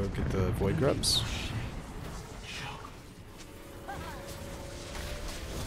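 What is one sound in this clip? Magical spell effects whoosh and crackle.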